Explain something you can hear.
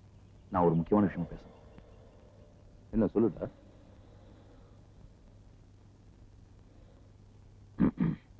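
A young man speaks in short, loud phrases.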